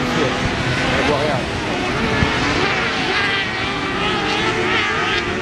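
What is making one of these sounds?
Tyres skid and spray loose dirt.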